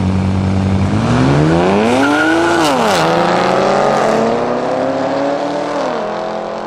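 Car engines roar as they accelerate away with rising pitch.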